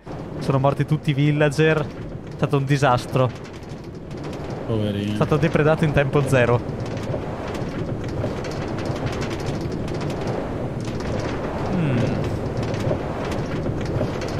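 A minecart rattles steadily along rails.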